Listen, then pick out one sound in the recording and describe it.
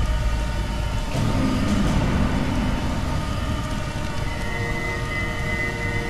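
A magical glow hums and shimmers steadily.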